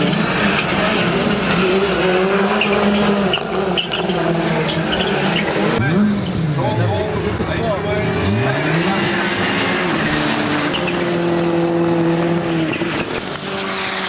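Racing car engines roar and rev loudly, rising and falling in pitch as cars pass.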